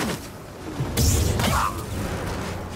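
A lightsaber swings through the air with a whoosh.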